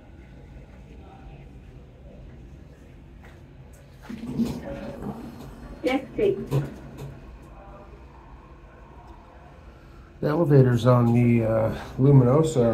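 A glass elevator hums as it descends.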